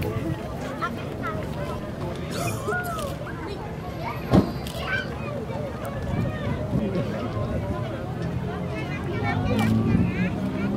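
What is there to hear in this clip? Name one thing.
Children shout and squeal nearby.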